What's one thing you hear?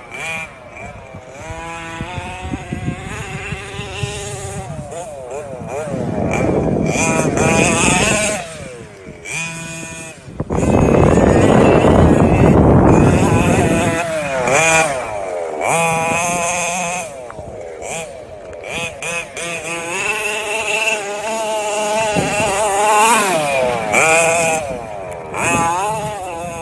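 A small electric motor whines, its pitch rising and falling as a toy car speeds up and slows down.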